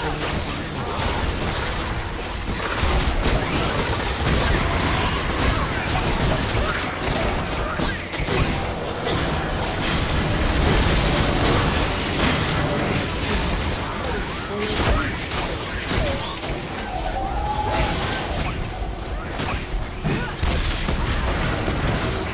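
Spell effects and hits from a video game crackle and burst throughout.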